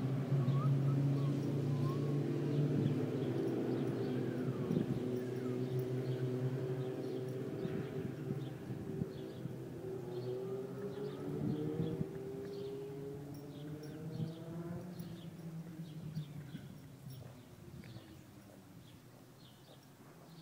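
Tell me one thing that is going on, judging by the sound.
A horse tears and crunches grass as it grazes close by.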